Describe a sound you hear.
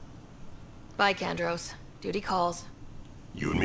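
A young woman speaks calmly up close.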